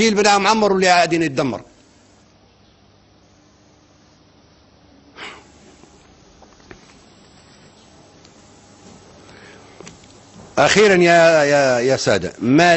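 An elderly man speaks forcefully into a microphone, with long pauses.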